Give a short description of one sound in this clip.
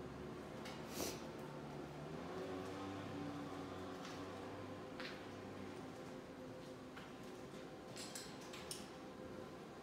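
Footsteps tap slowly on a hard floor in an echoing passage.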